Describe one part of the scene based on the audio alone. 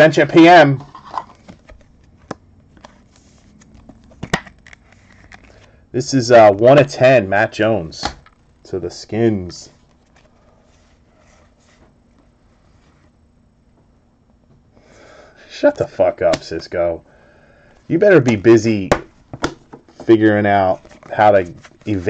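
Trading cards rustle and slide softly between fingers.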